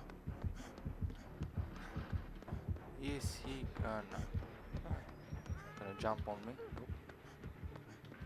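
Quick footsteps thud steadily as someone runs.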